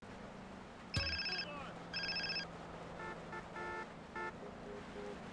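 A phone rings in short electronic bursts.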